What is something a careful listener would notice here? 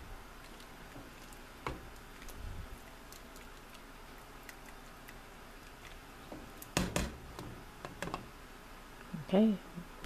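A wooden spoon stirs and knocks against a metal pot.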